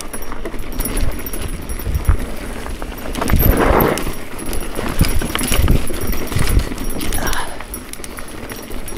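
A bicycle frame clatters and rattles over bumps.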